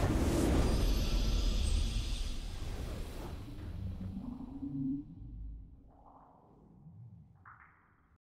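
A victory fanfare swells and rings out.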